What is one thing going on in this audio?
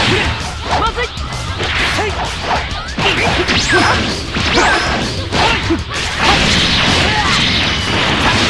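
Punches and blasts thud and crackle rapidly in a fight.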